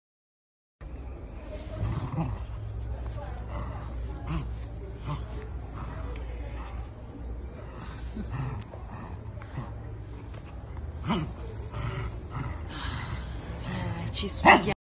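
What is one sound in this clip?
A small dog growls playfully.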